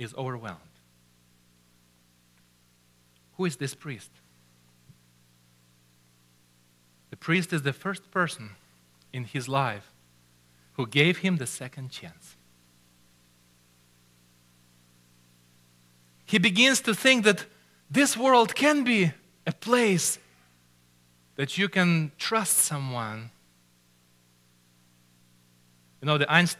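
A middle-aged man speaks with animation through a microphone, pausing often.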